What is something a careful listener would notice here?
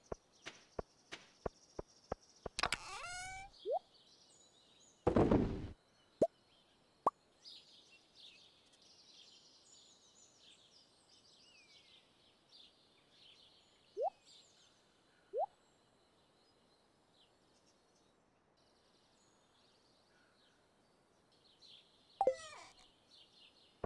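Soft menu clicks and pops sound as items are moved around.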